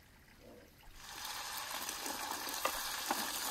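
Chopped onions drop into hot oil and sizzle loudly.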